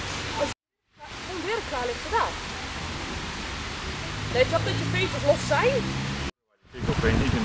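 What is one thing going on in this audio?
Several men talk calmly nearby outdoors.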